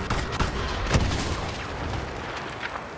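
An explosion booms nearby.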